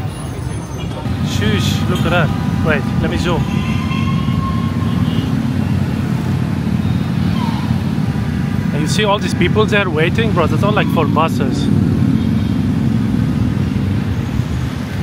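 Traffic hums steadily along a busy street.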